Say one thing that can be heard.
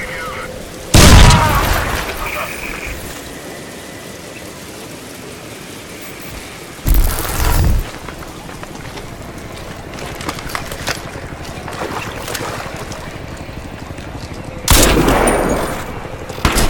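Loud gunshots fire, each followed by a booming echo.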